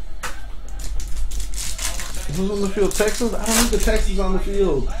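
A foil wrapper crinkles and tears in someone's hands.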